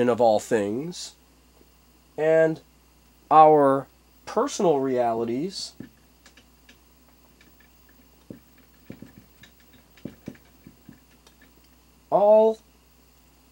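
A man speaks calmly nearby in short bursts.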